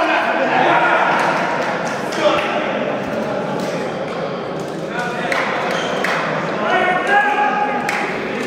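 A crowd of young men talks and shouts in a large echoing hall.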